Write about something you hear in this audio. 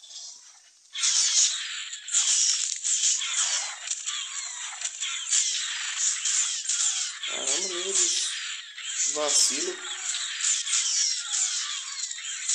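A large reptile bites and snarls in a fight.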